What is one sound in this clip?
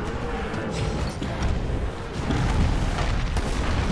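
Explosions burst with fire.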